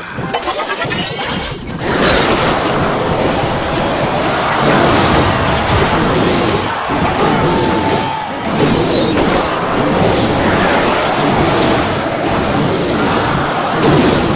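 Electronic game battle effects clash and crackle loudly.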